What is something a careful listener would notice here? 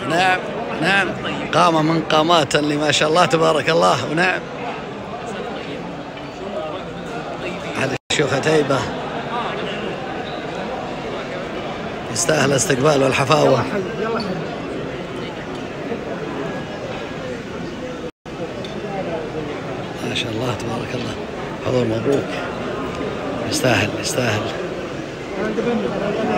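Men talk and greet each other in a crowded room.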